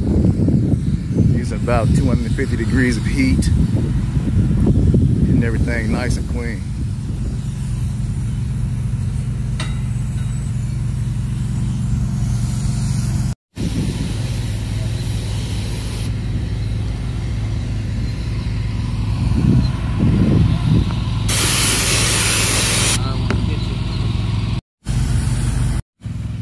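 A fogging machine's motor hums steadily nearby.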